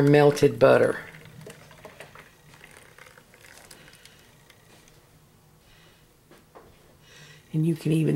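Thick liquid pours from a pot into a plastic jug.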